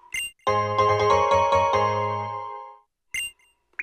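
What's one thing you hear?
A short, bright game jingle plays.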